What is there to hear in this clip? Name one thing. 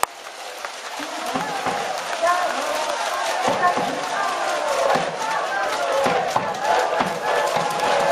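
Spectators nearby chatter and call out.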